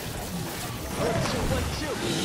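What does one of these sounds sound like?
An energy blast bursts with a loud whoosh.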